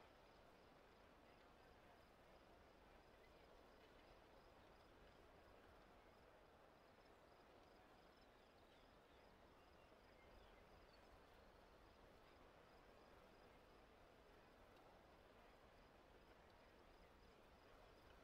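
Waves lap softly against a rocky shore.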